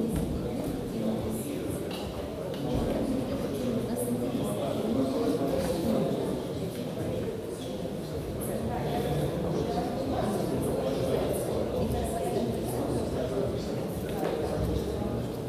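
A man talks calmly with another man close by.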